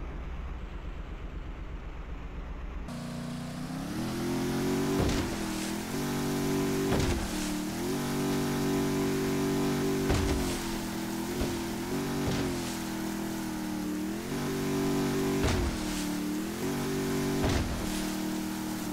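Waves slap and splash hard against a speeding boat's hull.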